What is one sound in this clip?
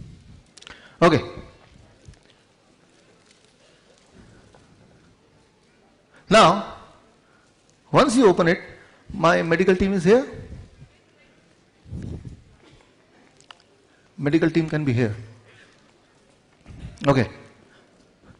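A man speaks through a microphone in short bursts with pauses, echoing in a large hall.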